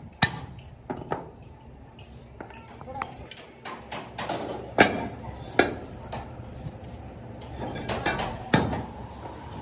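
Heavy metal castings clank and knock against each other.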